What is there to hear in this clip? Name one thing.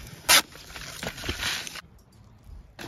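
A paper lid rustles and crinkles.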